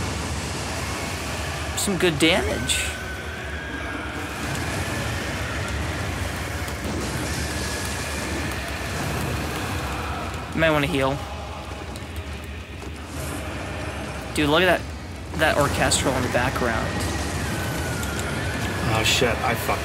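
Fire roars and blasts in a game.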